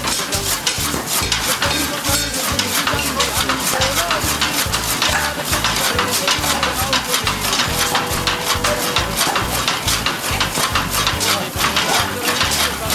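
A hand-cranked chaff cutter rattles and thumps rhythmically as its flywheel turns.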